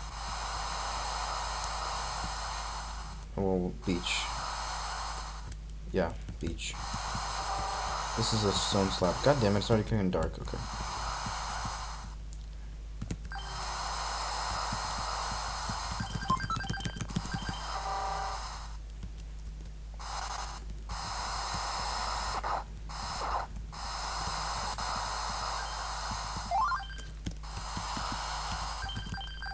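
Chiptune video game music plays on a loop with short pauses.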